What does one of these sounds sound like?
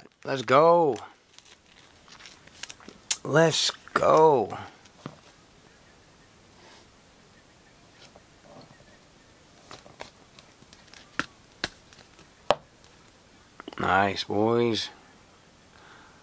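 Trading cards rustle and click against a hard plastic case.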